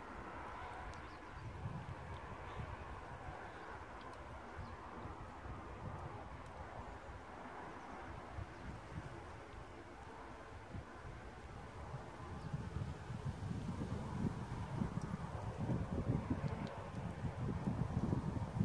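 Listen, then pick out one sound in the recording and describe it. Wind rumbles and buffets outdoors, growing stronger toward the end.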